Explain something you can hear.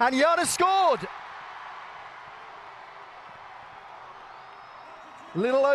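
A crowd cheers loudly in a large stadium.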